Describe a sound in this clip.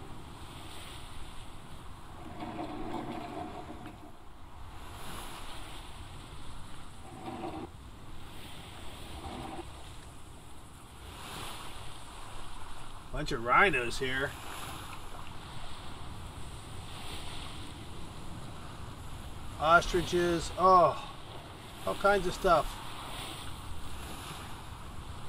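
Waves splash against the hull of a sailing ship moving through water.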